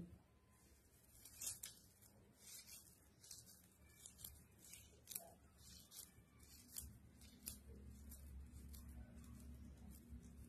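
Hands squish and rustle a crumbly mixture in a pan.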